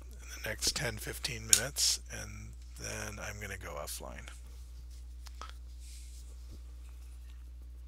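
A palette knife softly scrapes thick paint.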